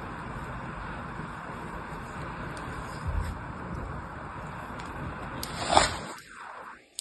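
Fingers press and crumble soft sand in a plastic mould.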